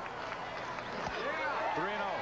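A baseball strikes with a single sharp thud.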